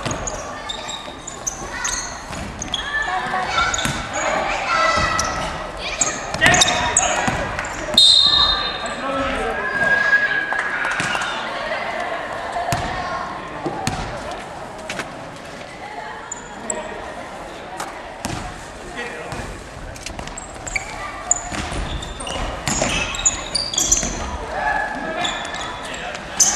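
A basketball bounces and thuds on the floor, echoing in a large hall.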